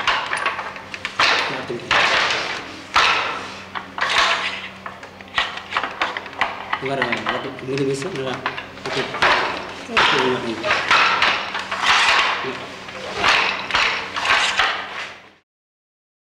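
A wooden loom beater thuds against the threads in a steady rhythm.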